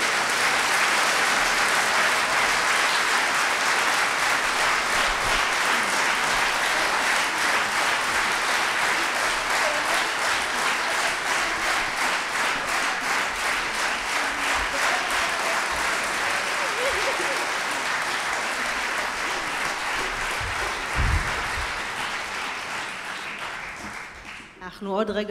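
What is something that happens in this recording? A large audience claps steadily in a big hall, and the clapping fades out at the end.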